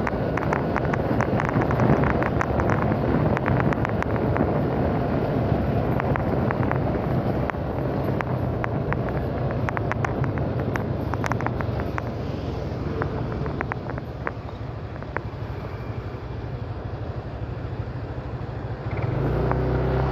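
A small motorcycle engine hums while cruising along a road.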